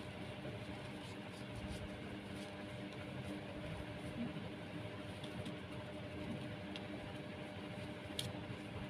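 Coarse rope rustles and scrapes softly as hands twist it.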